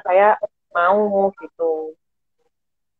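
A young woman speaks cheerfully over an online call.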